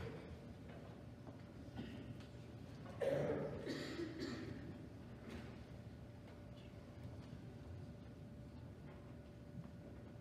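An audience murmurs and shuffles quietly in a large hall.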